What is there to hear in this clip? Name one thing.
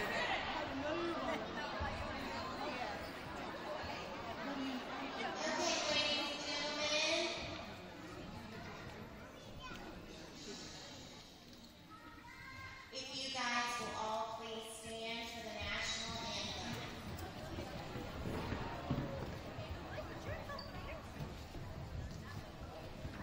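A crowd murmurs and chatters in a large echoing hall.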